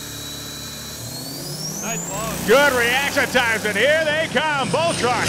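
A truck engine revs up and roars as it accelerates.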